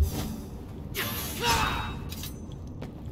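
A sword slashes through the air with a sharp whoosh.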